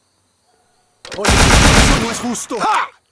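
An automatic rifle fires a short burst.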